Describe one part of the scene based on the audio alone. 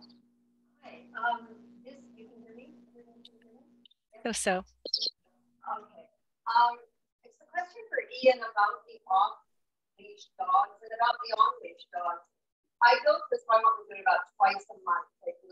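An older woman speaks with animation over an online call.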